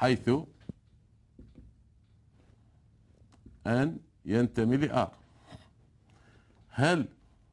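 A man speaks in short bursts.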